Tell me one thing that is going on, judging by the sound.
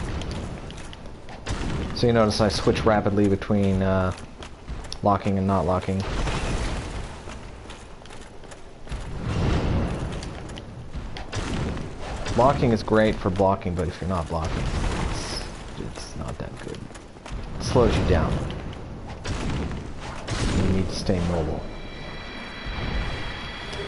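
Heavy weapons clash and strike with loud metallic blows.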